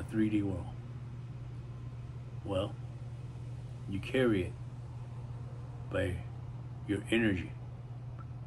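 A middle-aged man speaks calmly close by, in short phrases with pauses.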